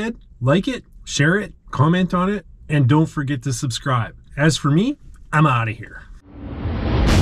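A middle-aged man talks with animation, close to the microphone.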